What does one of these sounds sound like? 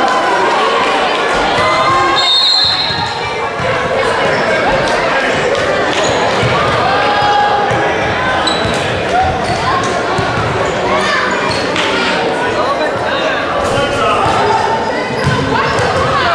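Children chatter and shout in a large echoing gym.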